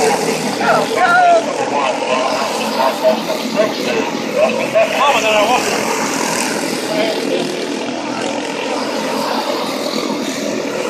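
Small kart engines buzz and whine as karts race around a track.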